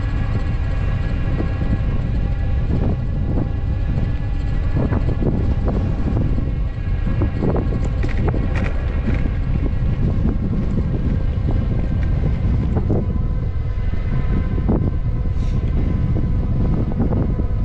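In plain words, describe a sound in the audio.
Wind buffets loudly and steadily throughout, outdoors.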